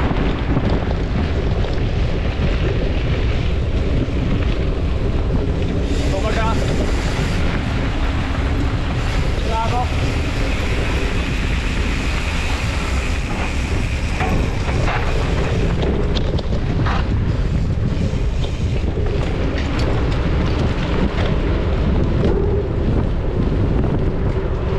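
Bicycle tyres roll and rattle over a dirt track.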